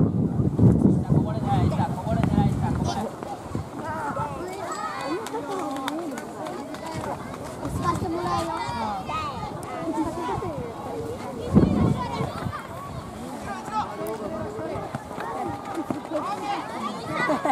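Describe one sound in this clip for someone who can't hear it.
Children shout and call out across an open playing field.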